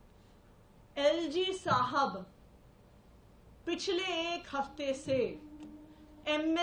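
A woman speaks forcefully into a microphone, in short bursts with pauses.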